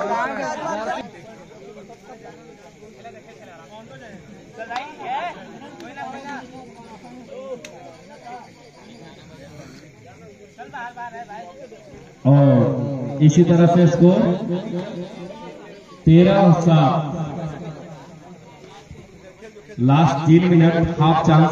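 A young man chants rapidly and continuously, heard outdoors.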